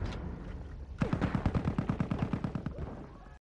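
A machine gun fires in a rapid rattle.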